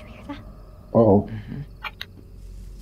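A young woman hums softly.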